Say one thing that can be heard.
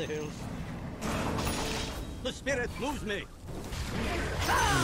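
Magic spells crackle and burst in a fight.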